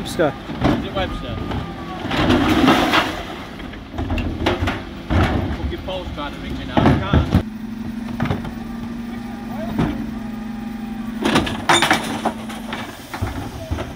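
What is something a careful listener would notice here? A bin lift mechanism whirs and clanks as it tips wheelie bins.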